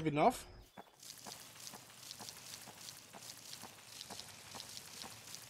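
Quick, light footsteps patter steadily on soft ground.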